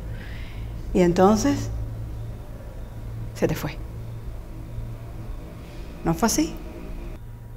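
A young woman answers quietly.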